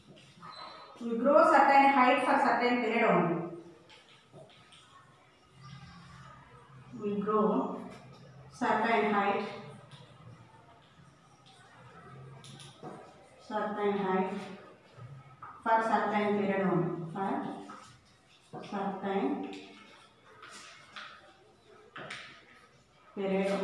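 A woman speaks aloud in phrases, close by, with pauses.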